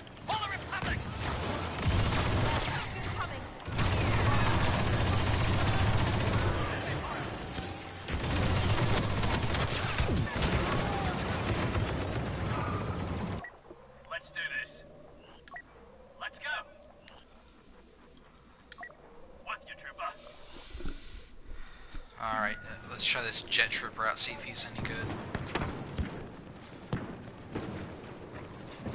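Blaster guns fire in rapid bursts amid loud battle noise.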